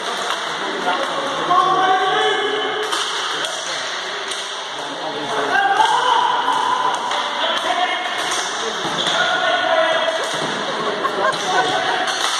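Players' shoes squeak on the hard floor.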